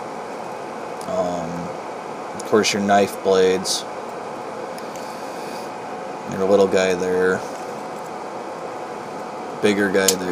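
A pocket knife's blade clicks as it folds and unfolds.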